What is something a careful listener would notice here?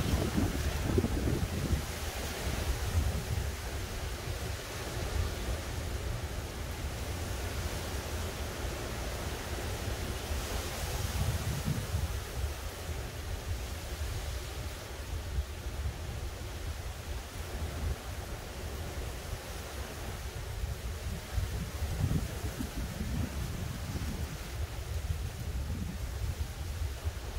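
Wind blows in gusts outdoors and rustles tree leaves.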